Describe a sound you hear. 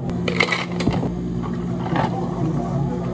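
Ice cubes rattle into a plastic cup.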